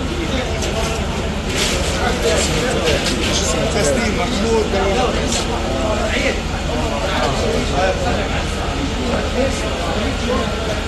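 Several men talk loudly close by.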